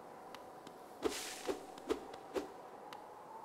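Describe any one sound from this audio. A blade slashes through the air with sharp swishes.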